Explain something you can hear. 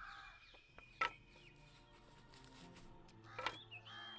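Wooden sticks knock together sharply.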